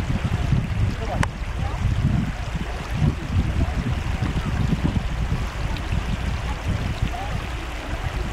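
Water rushes steadily over rock terraces.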